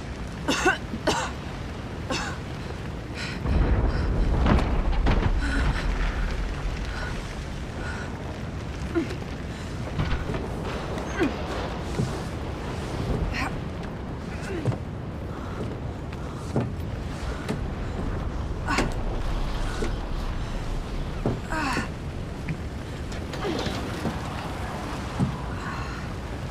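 A young woman pants and groans with effort, close by.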